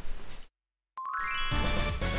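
A video game plays a rising electronic chime as play resumes.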